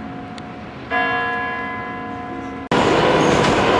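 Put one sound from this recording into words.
A clock tower bell strikes once.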